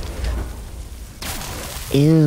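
A fire roars and rumbles low.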